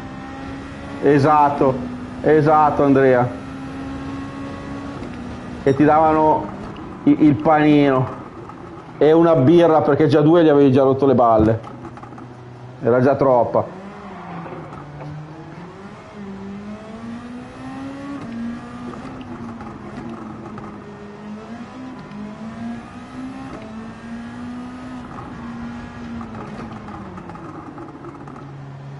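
A racing car engine drones and revs up and down steadily.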